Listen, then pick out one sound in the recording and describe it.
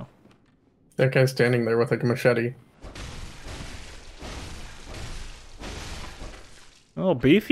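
Blades slash and strike a creature.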